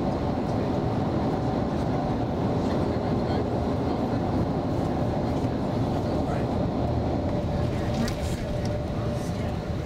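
A bus drives along a road, its engine and tyres rumbling as heard from inside.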